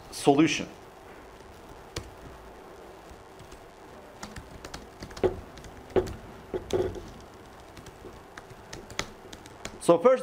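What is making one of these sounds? Keyboard keys click as a man types.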